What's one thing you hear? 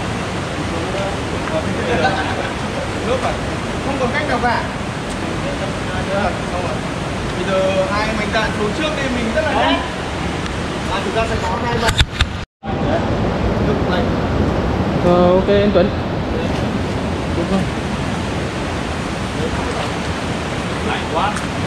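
Several young men talk and call out in an echoing cave.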